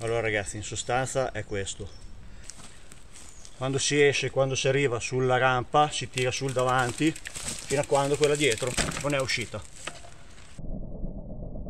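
A man speaks calmly and close by, outdoors.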